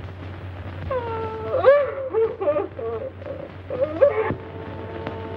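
A woman sobs loudly close by.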